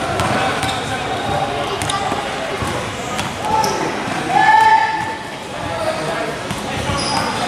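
Sneakers squeak on a court floor in a large echoing gym.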